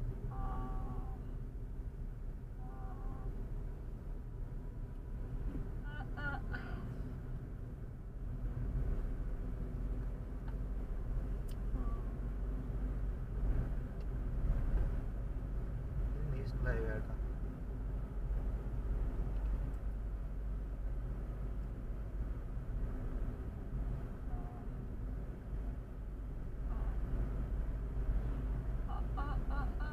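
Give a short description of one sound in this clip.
A car engine hums steadily with a low road rumble inside the car.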